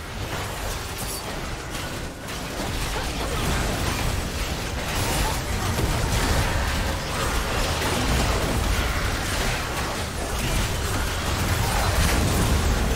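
Spell effects and attack sounds crackle and boom in a busy fight.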